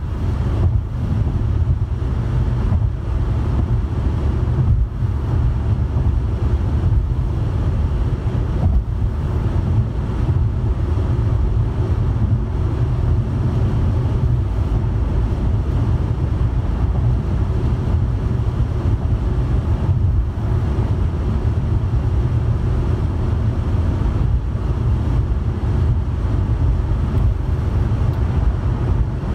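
Tyres roar steadily on the road surface.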